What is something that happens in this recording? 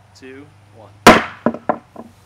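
A hammer strikes a phone with a sharp bang.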